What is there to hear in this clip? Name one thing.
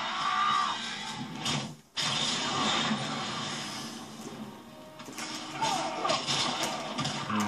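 Punches and kicks smack and thud from a video game, heard through a television speaker.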